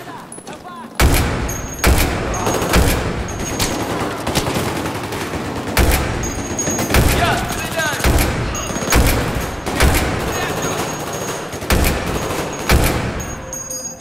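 Loud rifle shots ring out one after another, echoing briefly.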